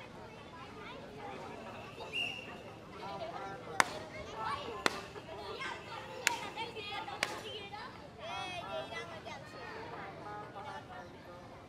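Children and adults shout and cheer outdoors at a distance.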